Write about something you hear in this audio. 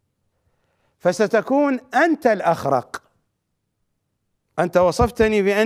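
A middle-aged man speaks emphatically into a microphone.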